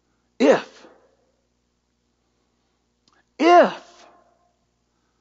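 A man speaks loudly through a microphone in two short bursts.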